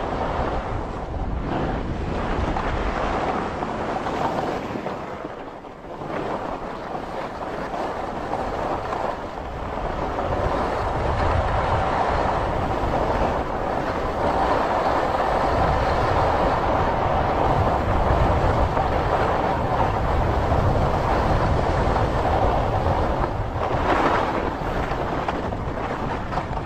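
Skis scrape and hiss steadily over packed snow.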